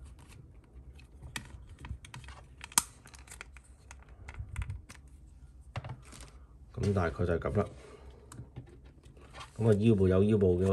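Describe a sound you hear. Plastic parts of a toy figure click and creak as it is handled up close.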